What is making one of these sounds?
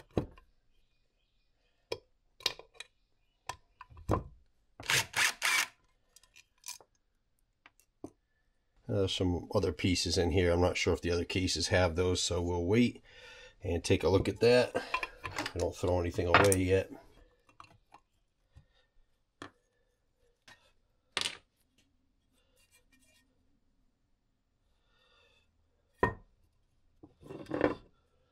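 Metal engine parts clink and knock against each other.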